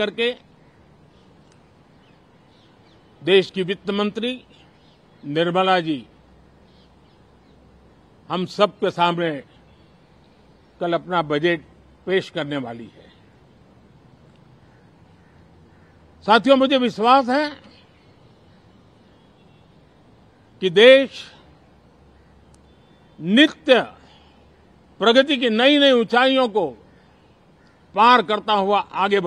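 An elderly man speaks calmly into microphones in short bursts with pauses.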